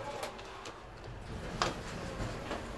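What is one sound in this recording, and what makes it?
A finger presses an elevator button with a soft click.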